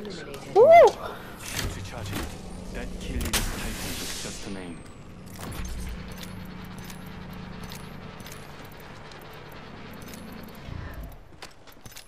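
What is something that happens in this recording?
A shield cell charges with an electric hum.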